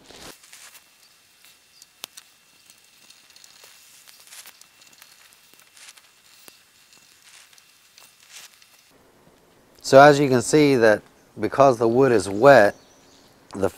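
A small wood fire crackles softly.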